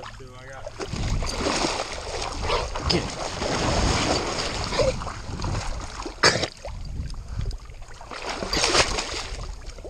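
A dog splashes loudly through shallow water.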